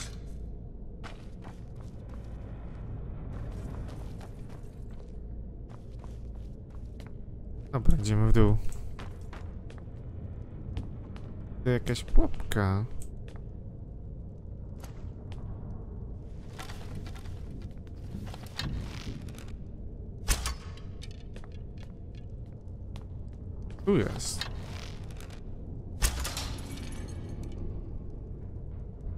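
Footsteps scuff on stone in a quiet echoing space.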